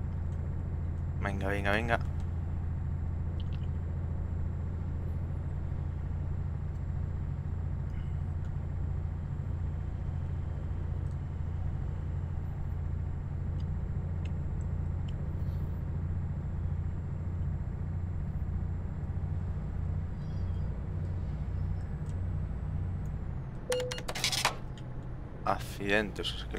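A truck engine hums steadily and low while driving.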